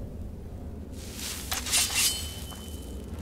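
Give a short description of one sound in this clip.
A magic spell crackles and whooshes loudly.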